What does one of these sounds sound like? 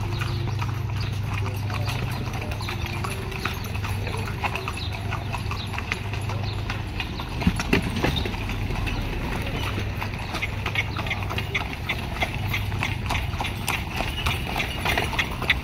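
A horse's hooves clop on a paved road as it pulls a carriage.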